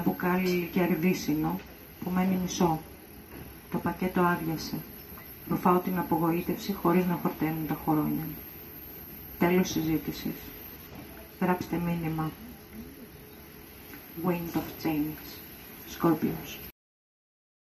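A woman speaks into a microphone, reading out calmly.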